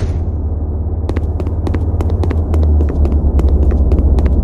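Footsteps patter quickly on pavement.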